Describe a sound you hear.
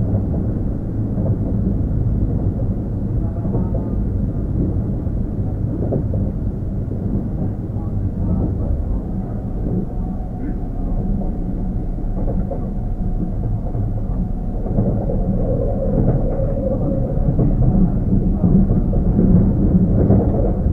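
A train rumbles low and steadily close by.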